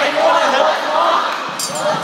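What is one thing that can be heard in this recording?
A young man taps small cymbals together.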